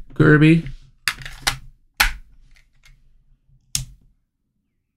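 A game cartridge slides into a handheld console and clicks into place.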